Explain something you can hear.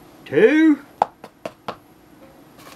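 A metal measuring cup taps against the edge of a plastic tub.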